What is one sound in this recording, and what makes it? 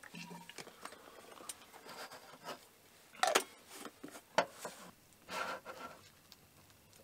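Ceramic cups and plates clink and knock on a wooden table.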